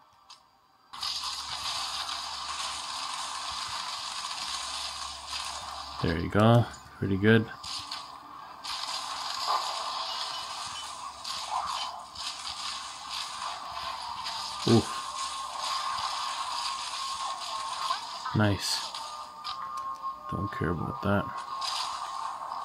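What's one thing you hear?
Magic spells crackle and whoosh in a video game battle.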